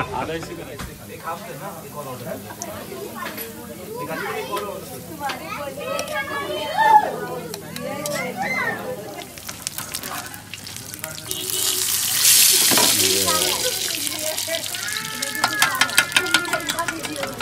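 Oil sizzles and bubbles in a hot pan.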